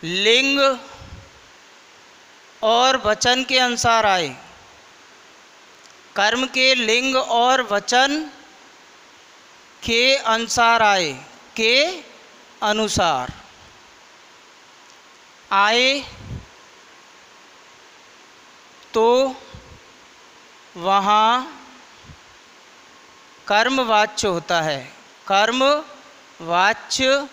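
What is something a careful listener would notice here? A young man speaks through a headset microphone in short, lively phrases with pauses.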